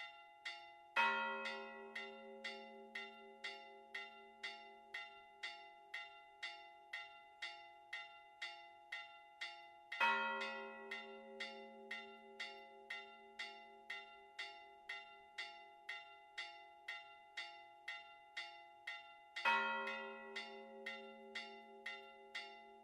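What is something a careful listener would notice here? A deeper, louder bell tolls now and then and slowly rings out.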